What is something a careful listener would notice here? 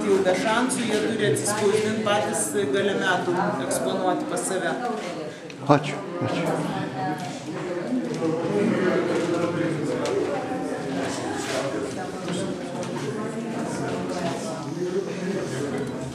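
A crowd of people murmurs in an echoing room.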